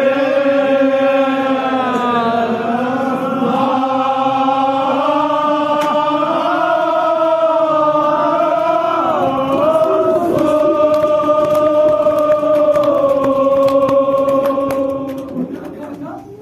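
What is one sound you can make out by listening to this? A young man chants a long, sustained lament through a microphone, heard over loudspeakers in an echoing room.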